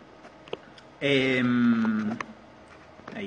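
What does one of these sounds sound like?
A man hums a long steady note.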